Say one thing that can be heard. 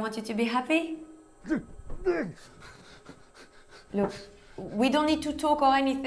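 A young woman speaks softly and pleadingly.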